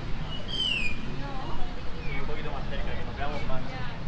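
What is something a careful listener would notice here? A group of adults chats quietly at a distance outdoors.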